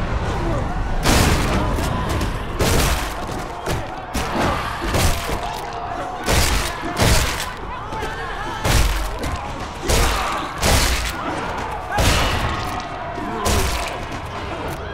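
Heavy blows and bursts of flesh thud and splatter again and again.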